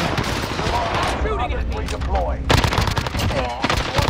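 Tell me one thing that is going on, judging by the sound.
Automatic gunfire rattles in quick bursts.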